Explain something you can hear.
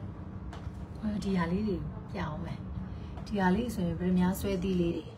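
A young woman sings softly close to the microphone.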